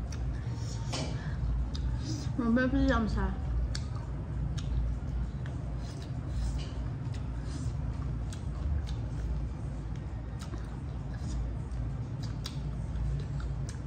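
A young woman chews and smacks her lips close to the microphone.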